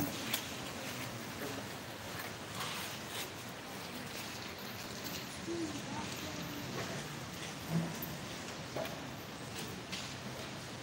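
A large crowd of young people murmurs and chatters in an echoing hall.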